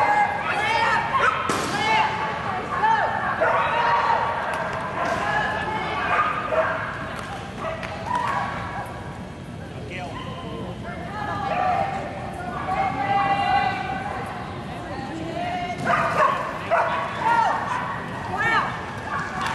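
A woman calls out commands to a dog in a large echoing hall.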